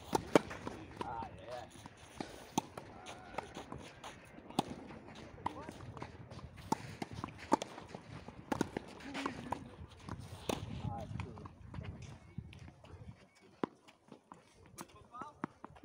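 Tennis balls are struck with rackets.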